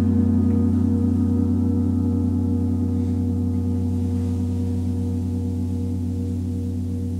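A large gong hums with a deep, steady, slowly pulsing drone.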